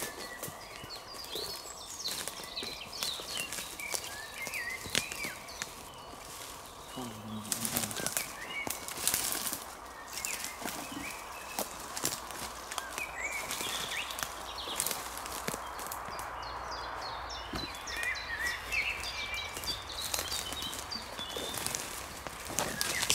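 A man's footsteps crunch on dry leaves and twigs.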